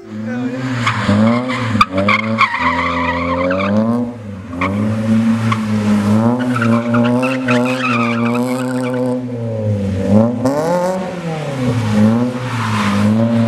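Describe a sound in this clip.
Tyres squeal on wet pavement.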